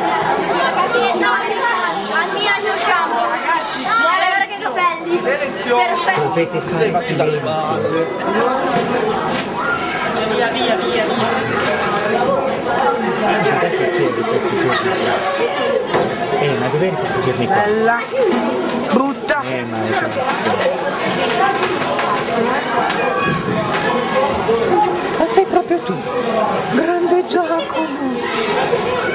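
A crowd of young men and women chatter loudly all around, close by, in a room that echoes.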